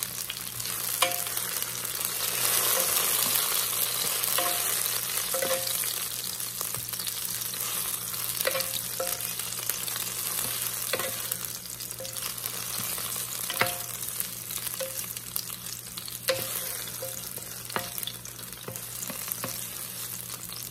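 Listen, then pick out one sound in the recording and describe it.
A wooden spatula scrapes and taps against a pot.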